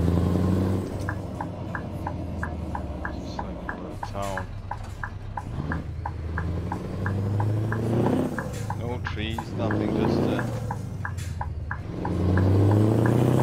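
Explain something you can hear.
A turn signal ticks steadily.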